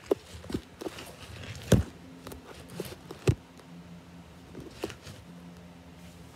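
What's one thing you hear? Shoes scuff and tap on a wooden floor.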